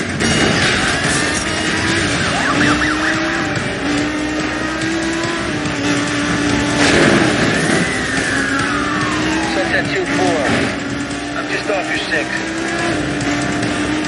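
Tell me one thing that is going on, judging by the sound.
A sports car engine revs steadily at high speed, shifting gears.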